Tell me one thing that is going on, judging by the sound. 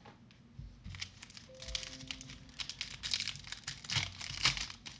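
A plastic-wrapped pack crinkles and tears open.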